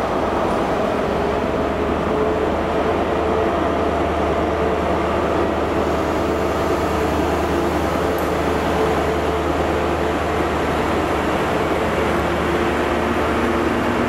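A train pulls slowly away, its engine growling louder.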